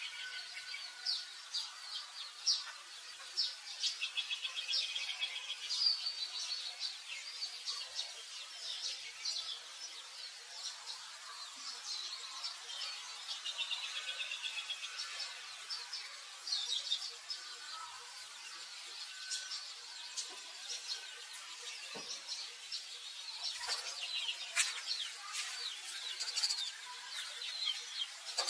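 A baby monkey squeaks and cries in high, shrill bursts.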